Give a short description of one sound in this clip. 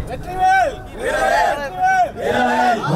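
A group of men shout in unison.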